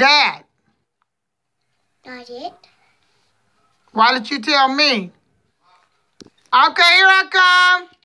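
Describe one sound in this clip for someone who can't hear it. A little girl talks close by in short bursts, her voice high and sing-song.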